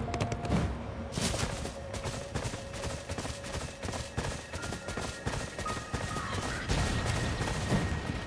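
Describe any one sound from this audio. Blasts and explosions boom during a fight.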